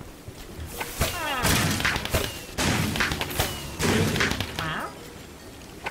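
Firework arrows burst with sharp crackling bangs.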